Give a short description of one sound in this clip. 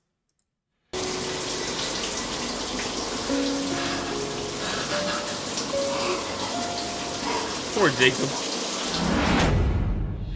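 A young man sobs quietly.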